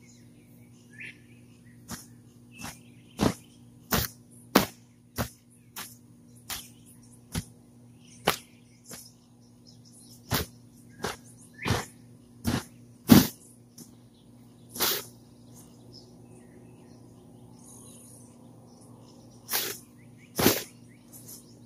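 A long-handled tool strikes a tarp with sharp, irregular slaps.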